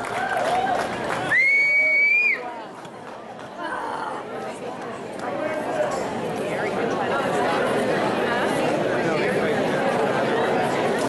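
A crowd of people chatters loudly in a large echoing hall.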